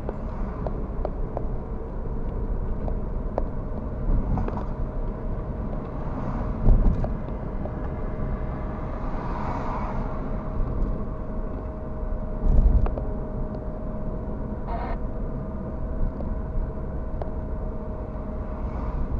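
Tyres rumble on the road surface.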